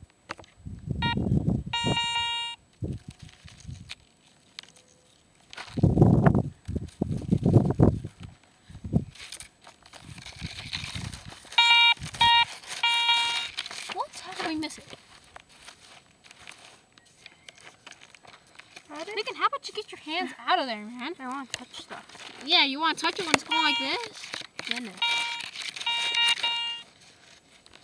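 A metal detector beeps in short bursts.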